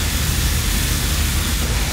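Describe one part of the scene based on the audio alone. An energy beam weapon hums and crackles.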